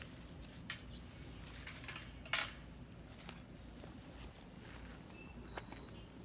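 Leafy stems rustle as a hand handles them in a metal bowl.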